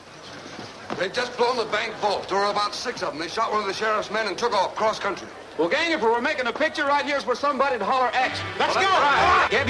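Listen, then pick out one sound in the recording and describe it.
Several men talk with one another, one after another.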